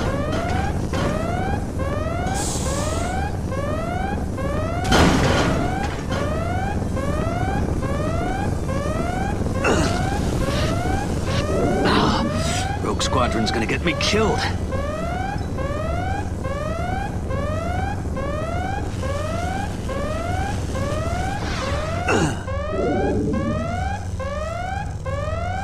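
A lightsaber hums steadily.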